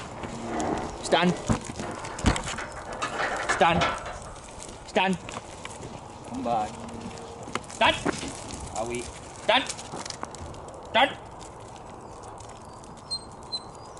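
Sheep hooves patter on gravel.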